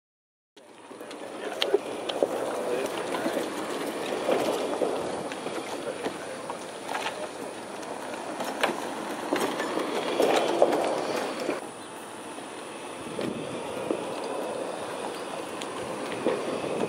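Electric golf carts hum and roll over concrete.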